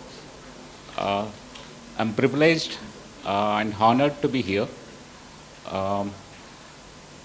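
A man speaks calmly into a microphone, heard close up.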